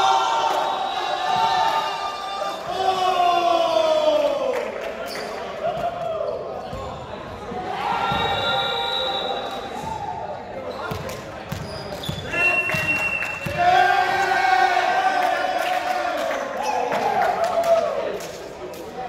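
Young people shout and cheer in a large echoing hall.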